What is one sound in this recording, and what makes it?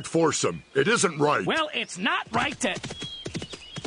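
A man speaks loudly with animation.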